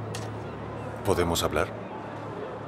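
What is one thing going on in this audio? A man speaks warmly and close by.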